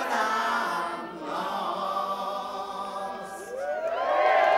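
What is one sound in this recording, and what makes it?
A band plays lively string music.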